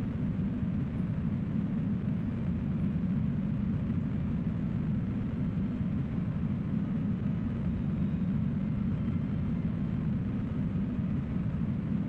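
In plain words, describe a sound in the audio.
A rocket engine roars with a steady, deep rumble.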